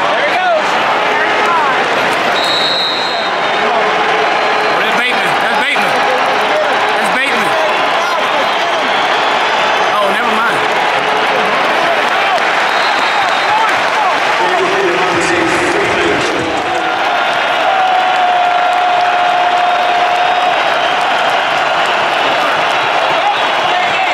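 A large stadium crowd roars and cheers loudly throughout.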